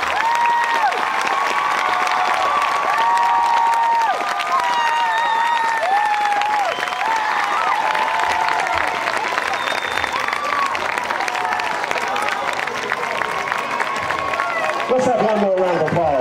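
A crowd murmurs and cheers nearby.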